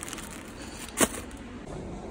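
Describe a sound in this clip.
Items drop into a plastic shopping basket.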